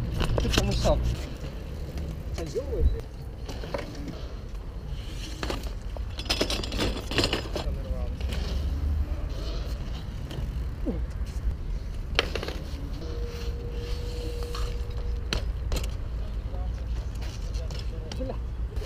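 Bicycle tyres roll and scrape on concrete.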